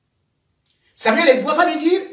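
A young man speaks clearly and close by.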